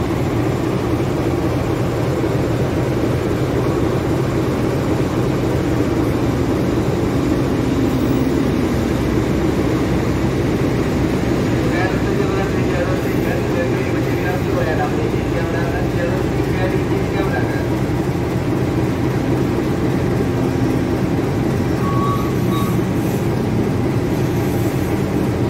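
A diesel locomotive engine rumbles and idles loudly nearby.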